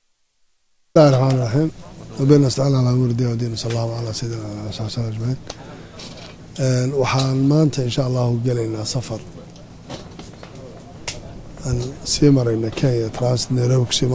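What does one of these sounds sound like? A man speaks firmly into close microphones.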